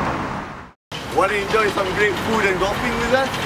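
A young man speaks cheerfully into a microphone, presenting.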